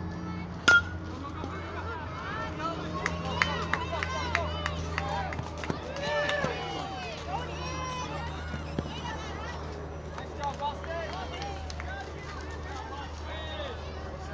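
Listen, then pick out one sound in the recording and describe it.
Children shout and cheer outdoors, some way off.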